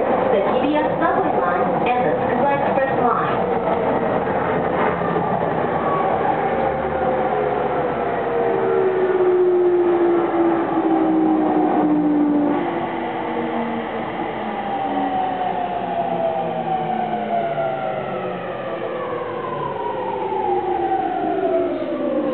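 A train rumbles and clatters along the tracks.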